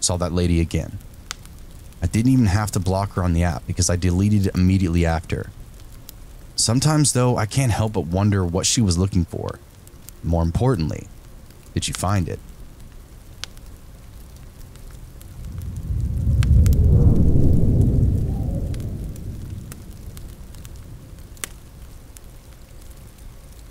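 A fire crackles and pops in a fireplace.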